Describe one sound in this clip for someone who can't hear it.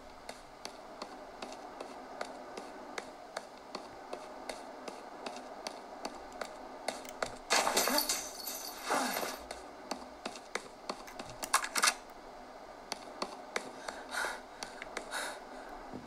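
Quick gunshots pop repeatedly through a handheld console's small speakers.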